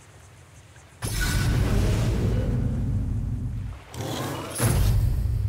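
Upbeat game music plays.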